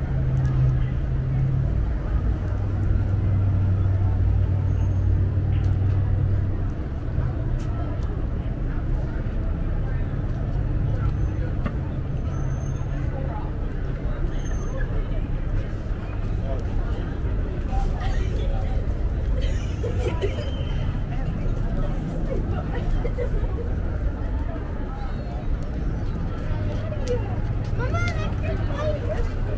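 Traffic rumbles steadily through a city street outdoors.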